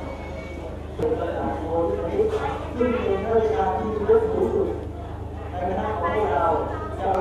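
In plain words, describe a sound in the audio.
Male monks chant loudly in unison through a microphone.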